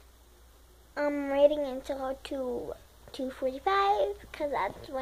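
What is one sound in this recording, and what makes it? A young girl sings loudly in a high voice.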